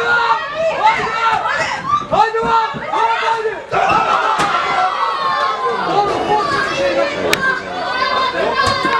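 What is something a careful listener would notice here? A man commentates excitedly, close to the microphone.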